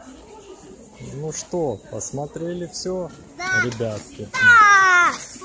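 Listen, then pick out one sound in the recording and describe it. A young child talks excitedly close by.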